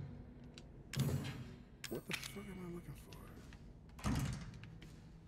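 A locked door rattles as its handle is tried.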